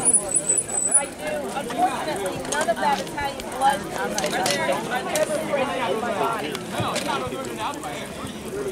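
Several women chat nearby outdoors.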